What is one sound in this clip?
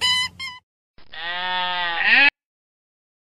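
A goat bleats once.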